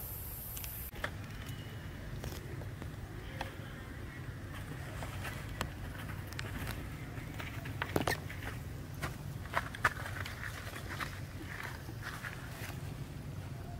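Leaves crackle as a monkey handles a baby monkey on the ground.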